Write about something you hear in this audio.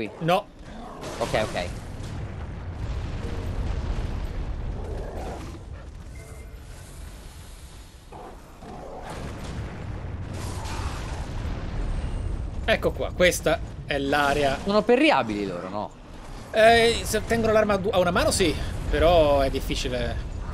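Heavy weapon blows thud and clang.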